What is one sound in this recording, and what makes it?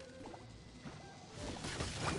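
A weapon swishes through the air.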